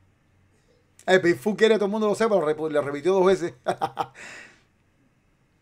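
A man talks close to a microphone with animation.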